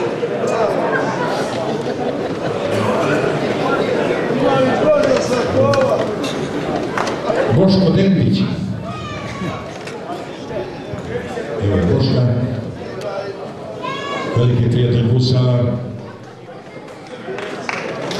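Men on a stage speak loudly and with animation, heard through a microphone in a large echoing hall.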